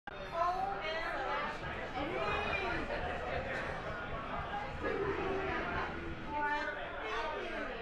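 Drums and cymbals are played.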